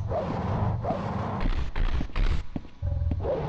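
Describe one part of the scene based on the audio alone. A weapon swings through the air with a whoosh.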